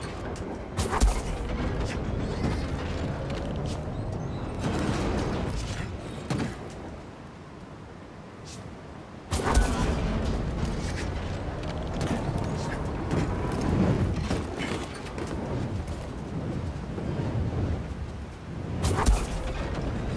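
A heavy metal thud rings out as a character lands.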